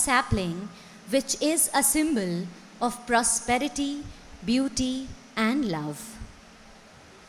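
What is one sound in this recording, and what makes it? A man announces loudly in a large echoing hall.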